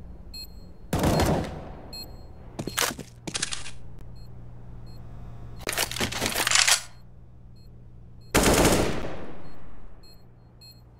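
Loud gunshots ring out with short echoes.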